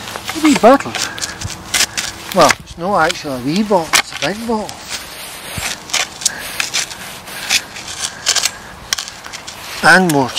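A spade scrapes and crunches into soil.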